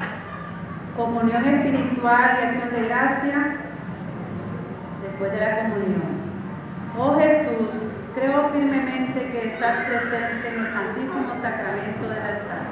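A young woman speaks calmly into a microphone, heard through a loudspeaker in a room.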